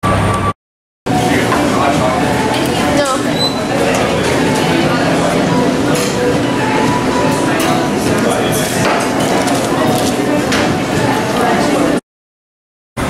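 Chatter and the clatter of cups fill a busy room.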